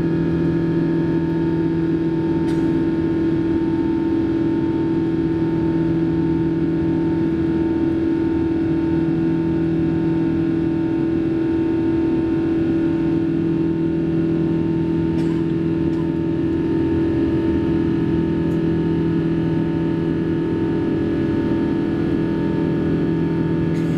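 Jet engines drone steadily inside an aircraft cabin.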